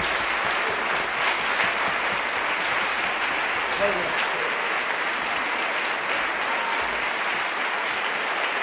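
An audience applauds steadily in a large, echoing hall.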